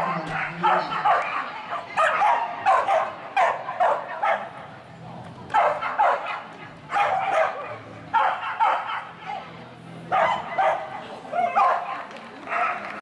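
A woman calls out commands loudly in a large echoing hall.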